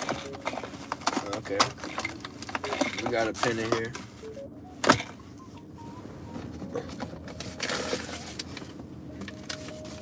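A young man talks casually, close by.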